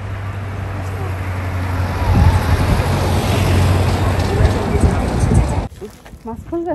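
A small road train rumbles past with a low engine hum.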